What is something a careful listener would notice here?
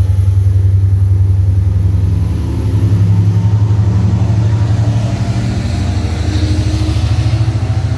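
A train rumbles past with a loud, steady, deep drone.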